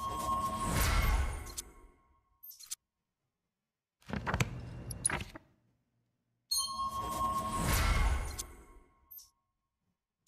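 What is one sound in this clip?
Game menu sounds chime and whoosh as a cursor moves.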